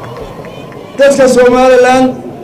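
An elderly man speaks forcefully through a loudspeaker microphone.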